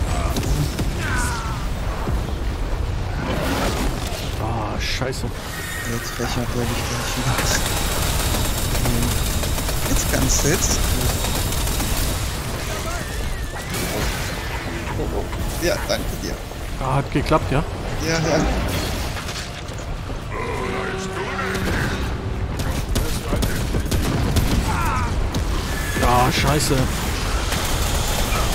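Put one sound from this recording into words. Gunshots and explosions boom from a game.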